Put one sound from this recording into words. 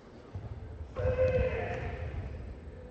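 A young man shouts sharply in a large echoing hall.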